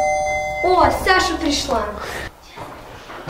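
A young girl speaks briefly.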